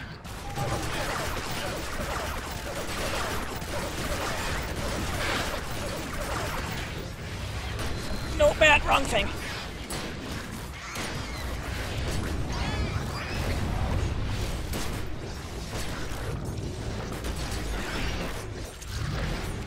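Water splashes heavily during a fight.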